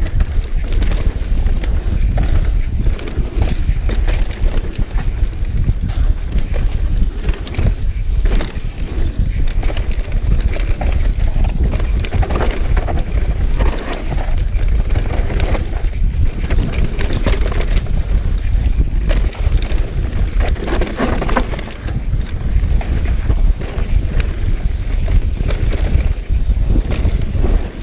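Wind rushes loudly past close by.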